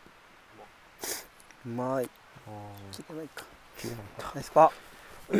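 A man speaks at a distance outdoors.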